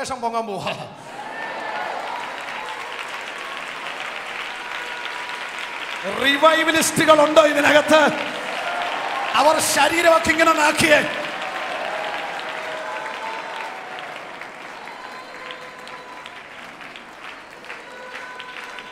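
A large crowd prays and calls out together in a big echoing hall.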